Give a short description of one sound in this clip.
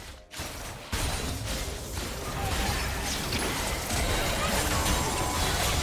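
Game spells and attacks burst and clash in a busy fight.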